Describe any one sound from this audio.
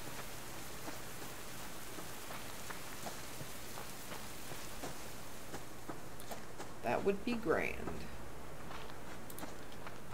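Footsteps crunch through grass.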